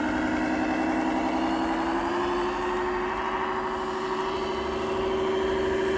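A radio-controlled model semi truck plays a simulated diesel engine sound through a small loudspeaker as it drives along, the engine note rising slightly.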